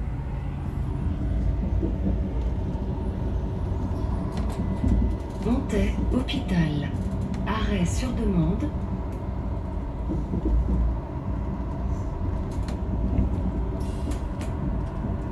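A train rumbles steadily along rails.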